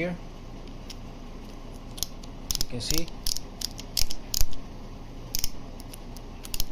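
A ratchet wrench clicks as it is turned by hand.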